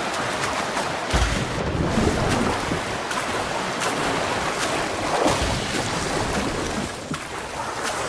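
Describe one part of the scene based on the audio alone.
Water splashes and sloshes as a swimmer paddles.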